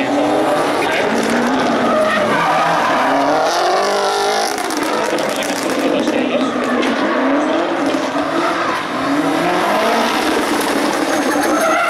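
Tyres squeal on the track surface.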